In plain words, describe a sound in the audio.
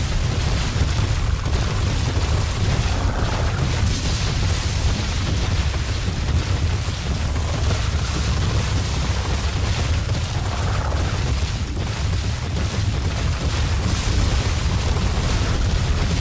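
Large wings flap overhead.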